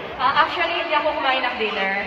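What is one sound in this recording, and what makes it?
A young woman speaks into a microphone over loudspeakers.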